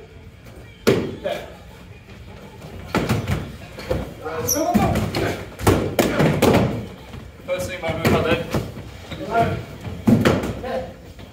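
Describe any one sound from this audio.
Padded foam weapons thump against shields and bodies.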